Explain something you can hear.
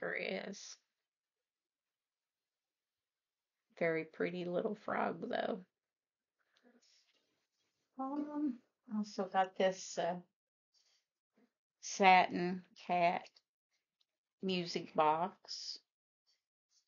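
An elderly woman speaks calmly and close by, in short bursts with pauses.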